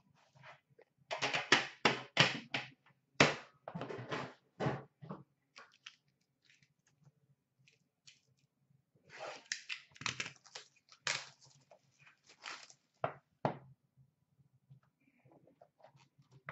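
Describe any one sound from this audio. Cardboard boxes rustle and bump as hands handle them.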